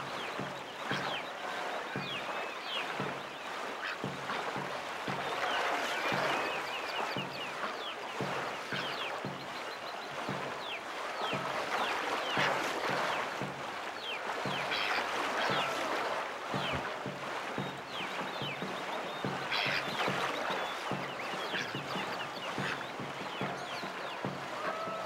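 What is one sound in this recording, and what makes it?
Paddles splash rhythmically through water in quick, even strokes.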